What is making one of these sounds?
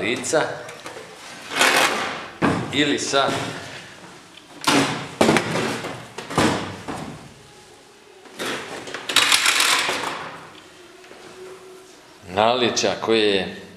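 A sheet-metal light fixture is flipped over and set down on a table.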